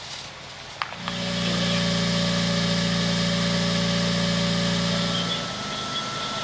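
A portable water pump engine drones loudly and steadily.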